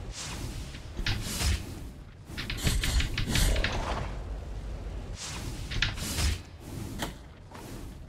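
Swords clash and slash in quick sharp strikes.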